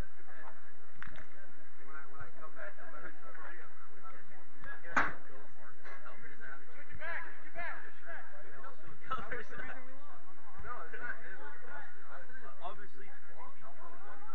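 Men shout and call out to each other across an open outdoor pitch.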